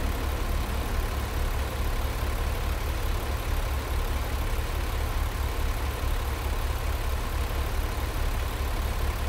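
A diesel semi truck engine idles with a low, even throb.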